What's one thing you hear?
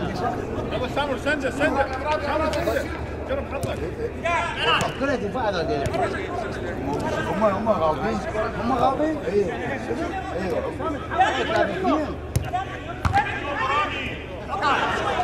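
Men shout and call out across an outdoor field.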